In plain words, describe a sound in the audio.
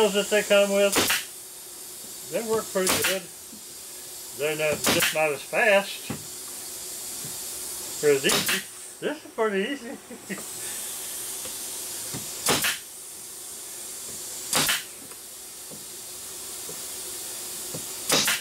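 A nail gun fires with sharp snaps.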